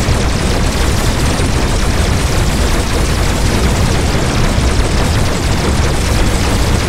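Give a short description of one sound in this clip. Guns fire rapid laser blasts with a loud, constant roar.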